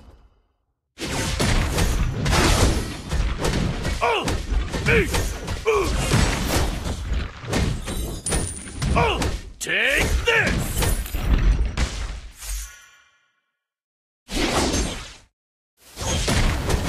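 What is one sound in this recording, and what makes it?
Game spells and weapon hits crash and whoosh in quick bursts.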